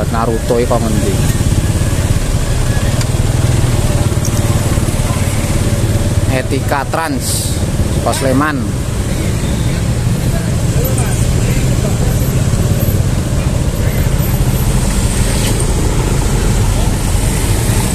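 A diesel coach engine idles close by.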